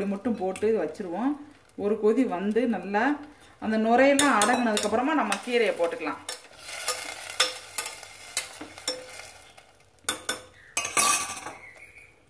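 A metal spoon stirs and clinks against a pot.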